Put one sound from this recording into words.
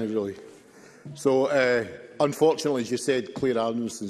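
An older man speaks steadily into a microphone.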